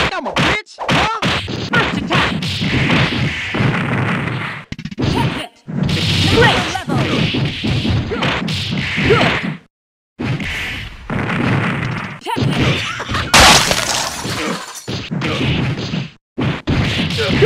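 Punches and kicks land with sharp smacks.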